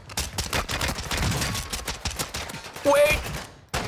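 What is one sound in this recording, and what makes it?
Pistol shots fire in rapid bursts.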